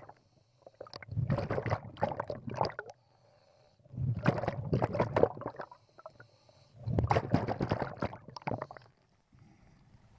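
Air bubbles from breathing gear roar loudly underwater in bursts.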